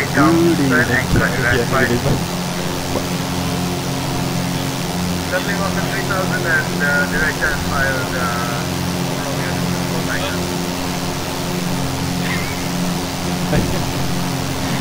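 A steady propeller engine drones throughout.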